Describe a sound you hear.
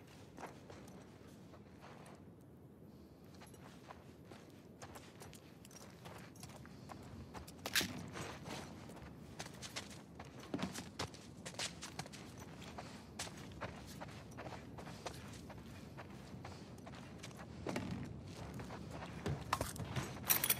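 Footsteps shuffle slowly across a hard floor.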